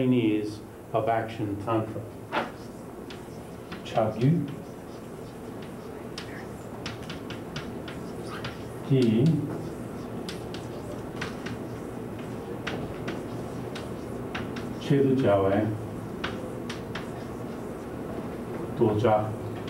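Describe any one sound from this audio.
An elderly man speaks calmly in bursts.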